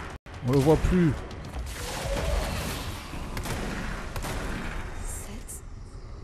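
Gunfire blasts and debris crashes loudly.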